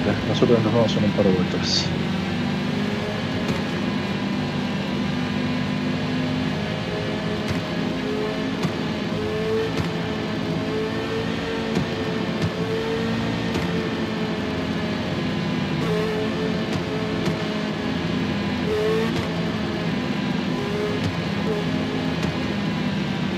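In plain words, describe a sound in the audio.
A racing car engine roars steadily at high revs.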